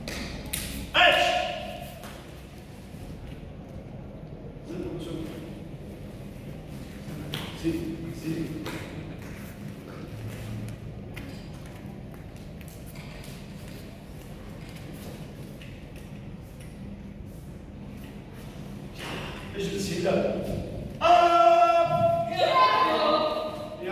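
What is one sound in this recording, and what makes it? Children shout in unison in an echoing hall.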